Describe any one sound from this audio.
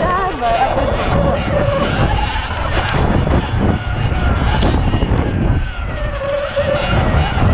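An electric motor whines, rising and falling in pitch.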